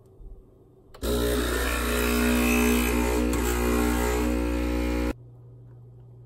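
A coffee machine hums and whirs loudly while brewing.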